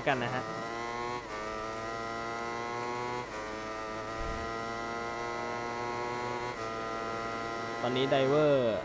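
A racing motorcycle engine screams at high revs, shifting up through the gears.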